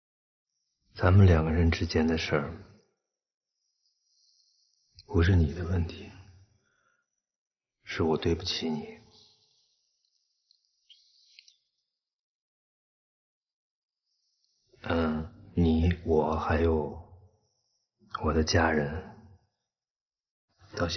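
A man speaks quietly and sadly, close by.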